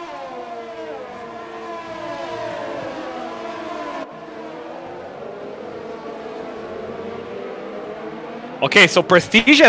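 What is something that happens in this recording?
Racing car engines whine past at high speed.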